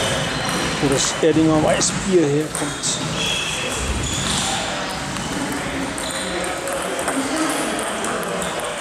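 A table tennis ball clicks against paddles and the table in a large echoing hall.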